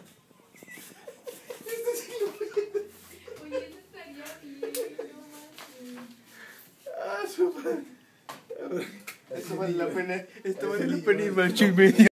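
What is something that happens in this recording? A young man talks and laughs with animation close by.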